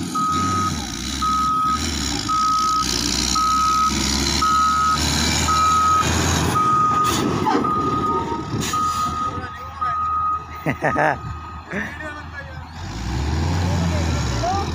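A heavy grader's diesel engine rumbles and roars nearby.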